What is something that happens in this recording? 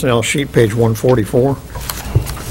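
A man speaks into a microphone in a room with a slight echo.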